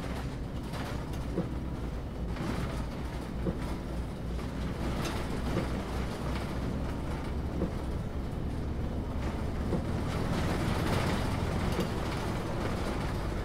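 A natural-gas city bus engine drones while driving.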